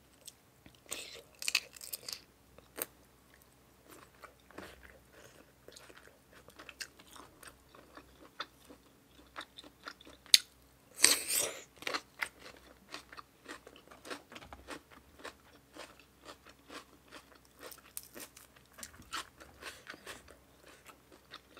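Crisp food crunches loudly close by.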